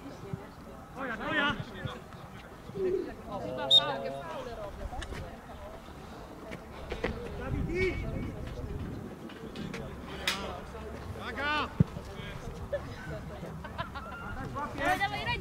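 Young players shout across an open field outdoors.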